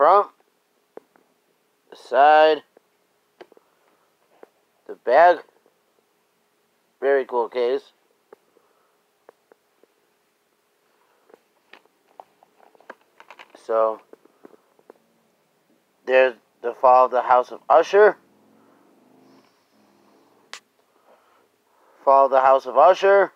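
A plastic disc case rustles and clicks in a hand.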